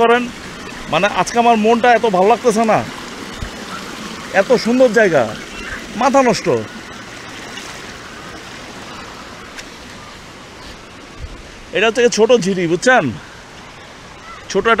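A stream rushes and splashes over rocks nearby.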